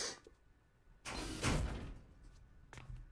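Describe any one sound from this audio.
A sliding door hisses open.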